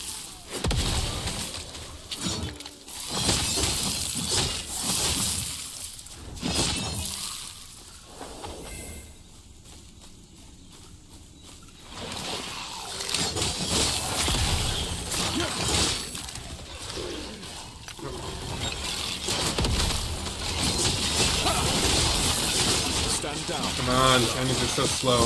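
Magic blasts and impacts crash loudly in a game's combat.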